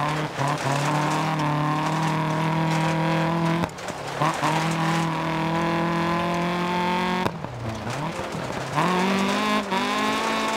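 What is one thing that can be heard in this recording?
A rally car engine revs hard and shifts through the gears.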